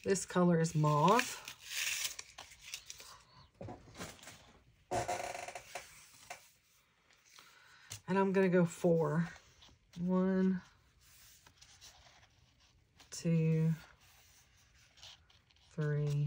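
Paper and fabric rustle as they are handled close by.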